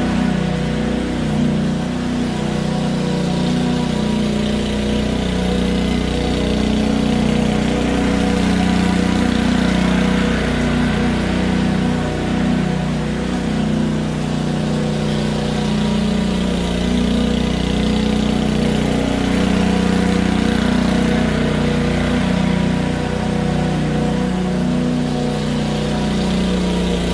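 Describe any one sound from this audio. A petrol lawn mower engine drones steadily, growing louder as the mower passes close and fading as it moves away.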